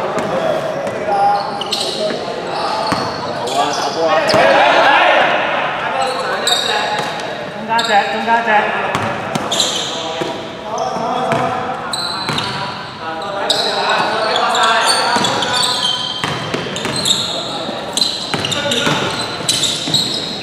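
Basketballs bounce on a wooden floor in a large echoing hall.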